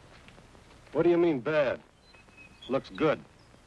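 A second man answers in a raised voice nearby.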